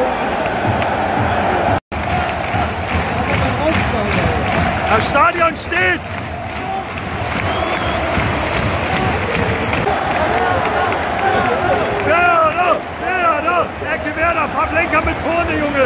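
A large stadium crowd chants and sings loudly all around.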